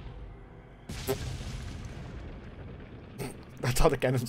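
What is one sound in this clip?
A cannon fires with a loud blast.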